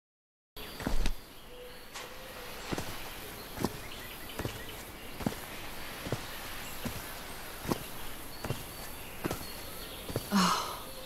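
Footsteps tread steadily over grass.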